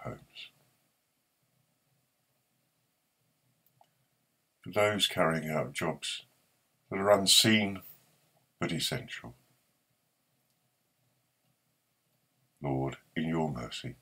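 An older man speaks calmly into a microphone, with pauses.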